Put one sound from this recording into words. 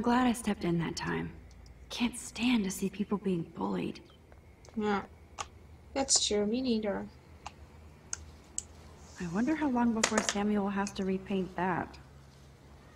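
A young woman talks casually and close to a microphone.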